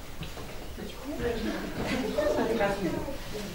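An elderly man speaks warmly in a deep voice.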